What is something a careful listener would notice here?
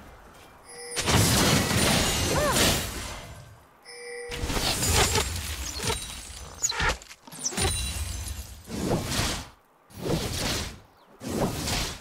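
Game spell effects whoosh and crackle in bursts.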